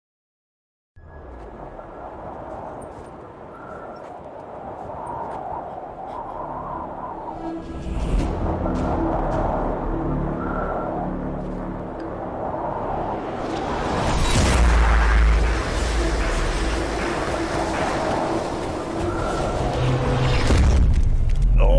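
A young man exclaims and reacts close to a microphone.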